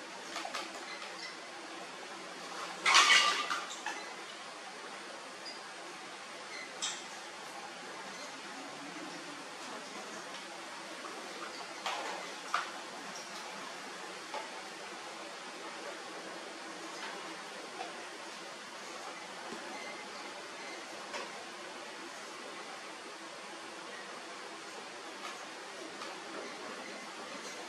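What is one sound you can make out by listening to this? Small monkeys scramble and bump against a plastic fan.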